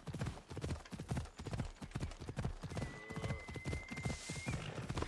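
Horse hooves thud rapidly on a dirt path.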